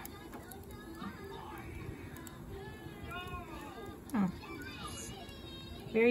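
A wood fire crackles and pops softly.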